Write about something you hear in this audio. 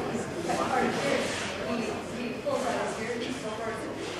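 Two men chat quietly.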